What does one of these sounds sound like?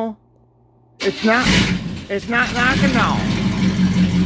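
A car engine cranks and starts.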